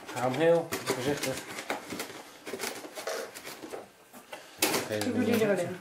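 Hard plastic knocks and rattles as a device is lifted out of foam packing.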